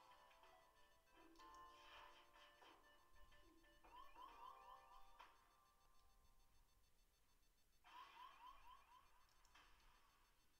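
Electronic warning beeps and chirps sound from a game.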